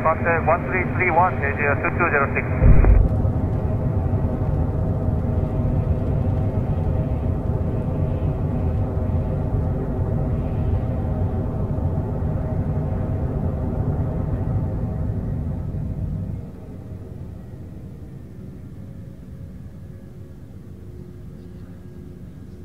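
Jet engines roar loudly, then quiet down to a low hum.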